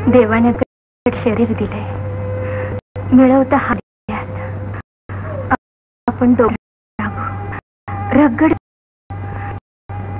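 A woman speaks with emotion, in a broken, pleading voice.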